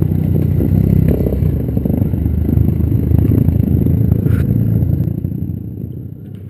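Motorcycles ride past on a gravel track.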